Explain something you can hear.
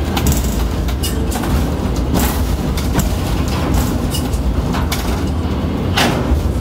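Metal clanks and rattles now and then.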